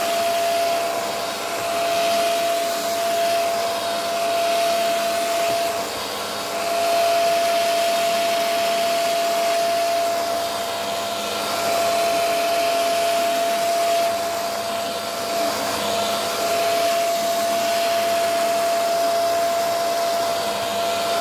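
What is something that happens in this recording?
A handheld vacuum cleaner whirs steadily with a high motor hum.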